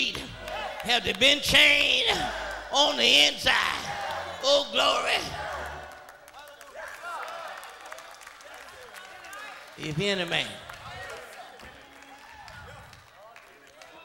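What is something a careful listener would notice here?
A man shouts with animation through a microphone in a large echoing hall.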